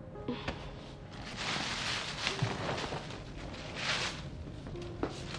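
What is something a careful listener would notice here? A plastic bag rustles and crinkles.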